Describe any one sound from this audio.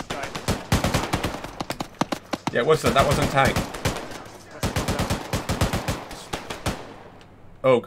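Rifles fire rapid bursts of gunshots close by.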